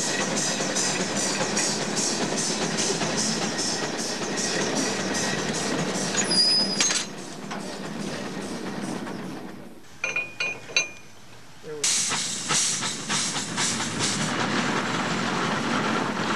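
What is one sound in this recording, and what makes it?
A steam engine chuffs in a steady rhythm.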